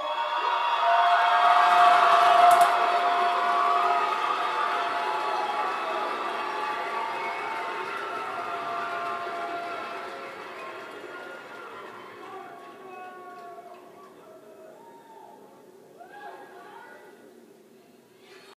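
A large choir sings through small speakers and slowly fades away.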